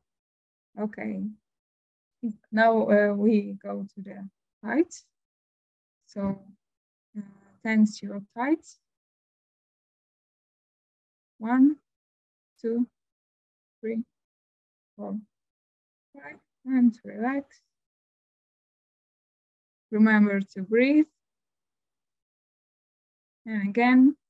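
A woman speaks calmly over an online call, with long pauses.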